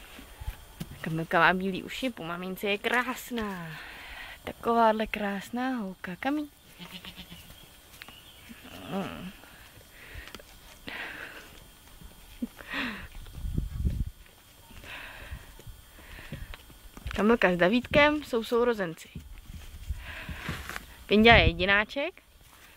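Young goats bleat loudly and repeatedly close by.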